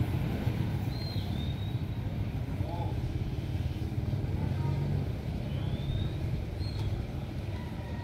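A caged bird gives short whistling calls.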